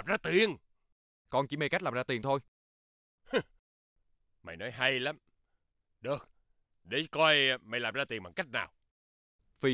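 A young man speaks quietly up close.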